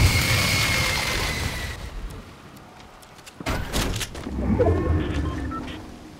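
A heavy tank engine rumbles low.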